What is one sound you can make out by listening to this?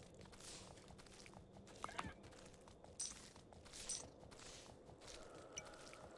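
Horse hooves clop along at a trot.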